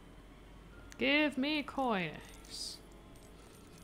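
Bright chiming coin jingles ring out in quick succession.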